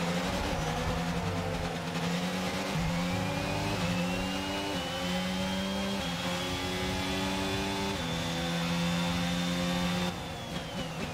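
A racing car engine screams at high revs, shifting up through the gears with sharp steps in pitch.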